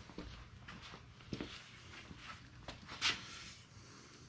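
Boots step on a plywood board.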